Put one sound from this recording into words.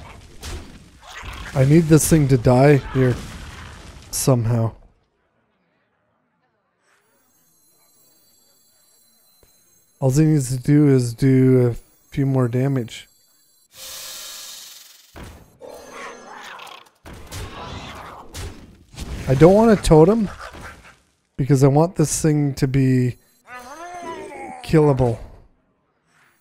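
A man talks with animation close to a microphone, in bursts with pauses.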